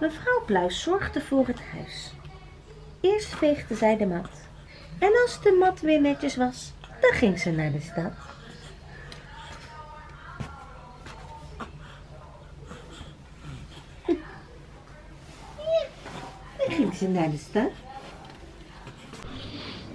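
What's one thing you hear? A young woman talks softly and playfully to a baby close by.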